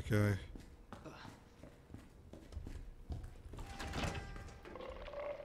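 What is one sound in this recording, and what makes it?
Heavy boots thud on a hard floor at a steady walking pace.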